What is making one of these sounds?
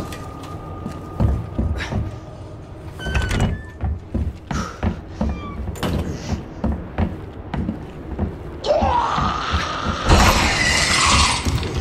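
Footsteps thud on a hard floor at a walking pace.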